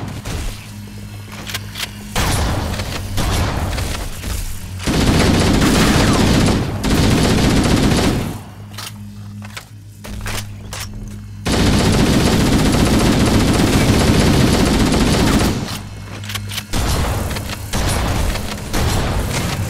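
Laser bolts zap and crackle.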